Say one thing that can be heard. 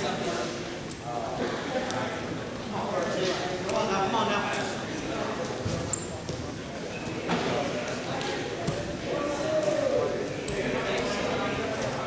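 Wrestlers' shoes squeak on the mat.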